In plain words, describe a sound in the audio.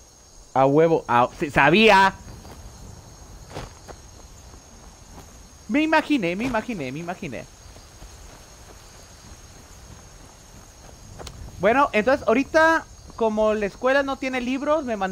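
A young man talks with animation into a close microphone, in bursts.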